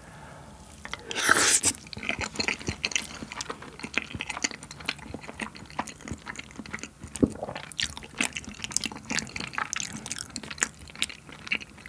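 A young man chews food wetly and close to a microphone.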